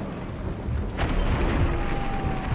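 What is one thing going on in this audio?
An explosion bursts with a loud blast.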